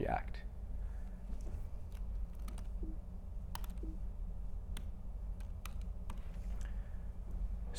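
Laptop keys click softly as a young man types.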